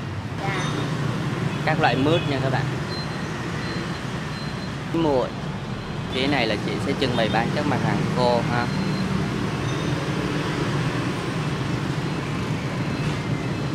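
Motorbikes and street traffic rumble steadily nearby.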